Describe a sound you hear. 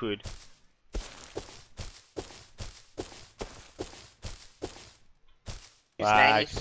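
Footsteps crunch quickly through dry grass.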